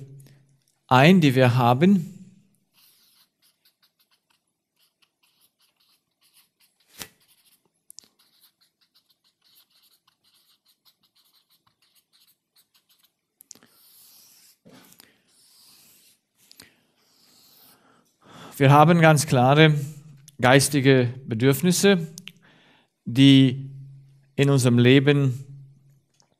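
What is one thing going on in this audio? A man speaks calmly to a room.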